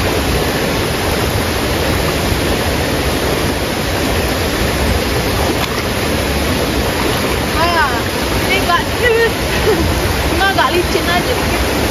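Water splashes around legs wading through a stream.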